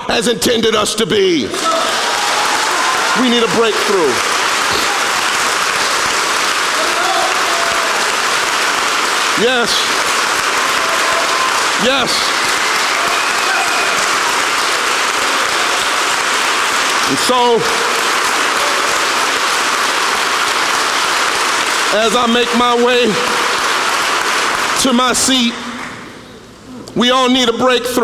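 A man preaches loudly through a microphone in a large echoing hall.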